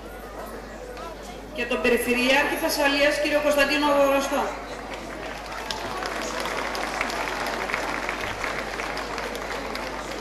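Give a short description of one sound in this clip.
A crowd claps and applauds in a large hall.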